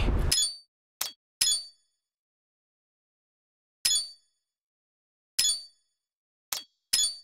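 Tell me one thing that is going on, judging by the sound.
Short electronic menu chimes sound several times.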